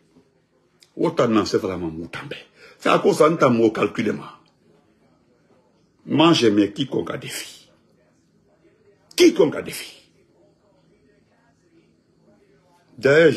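A man speaks with animation, close to the microphone, in short bursts with pauses.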